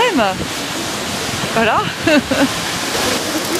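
A woman speaks cheerfully and close by.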